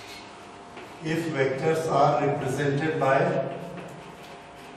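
A man speaks calmly, like a teacher explaining.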